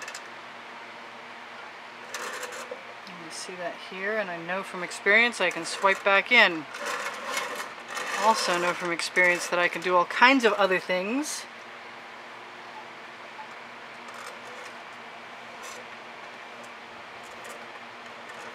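A wooden board scrapes and knocks softly as it is turned on a table.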